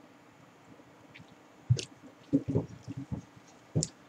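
A glass is set down on a wooden table with a soft knock.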